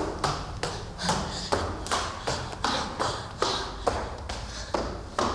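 Footsteps hurry down stone stairs.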